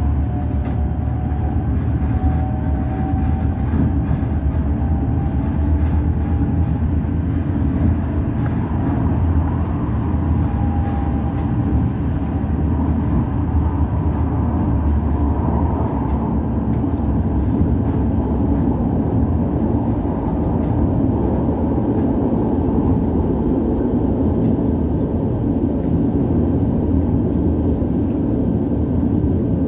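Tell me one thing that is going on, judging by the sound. A train rumbles steadily along the tracks at speed.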